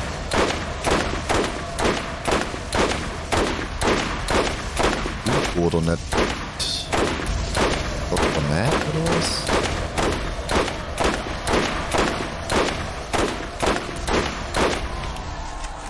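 Rapid gunshots fire in a steady rhythm.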